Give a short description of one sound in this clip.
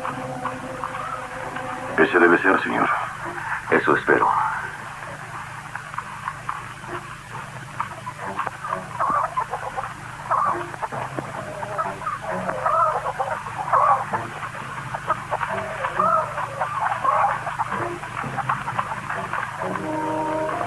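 A man speaks in a low voice nearby.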